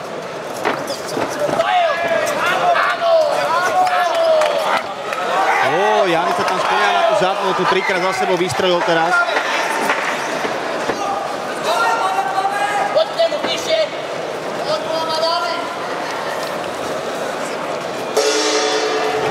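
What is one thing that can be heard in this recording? A crowd cheers and murmurs in a large echoing hall.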